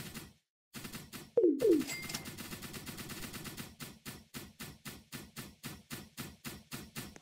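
Game guns fire in rapid, steady bursts.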